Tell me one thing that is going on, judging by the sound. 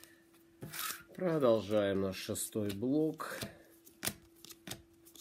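Trading cards rustle and click as they are handled.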